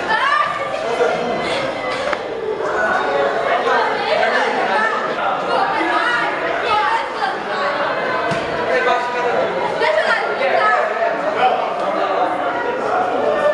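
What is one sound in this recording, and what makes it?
Children and teenagers shout and chatter excitedly in an echoing room.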